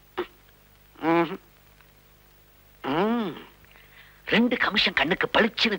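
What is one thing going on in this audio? A middle-aged man speaks with rising agitation, close by.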